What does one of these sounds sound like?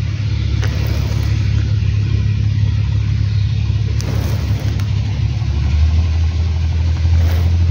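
A knife scrapes and cuts at thin bark.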